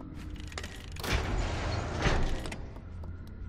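A barred gate rattles open.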